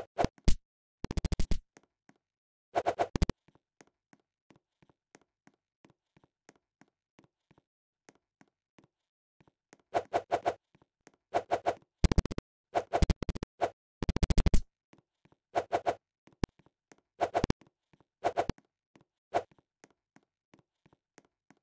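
Short electronic chimes pop as items are collected.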